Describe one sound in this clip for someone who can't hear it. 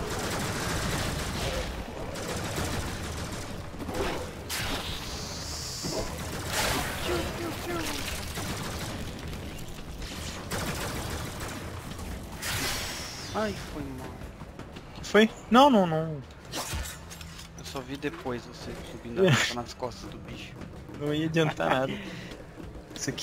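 Gunfire and blasts from a game clatter in bursts.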